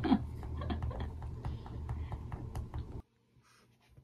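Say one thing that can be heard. A marker scratches on paper.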